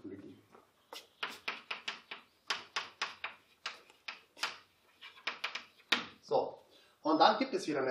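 Chalk taps and scratches quickly on a blackboard.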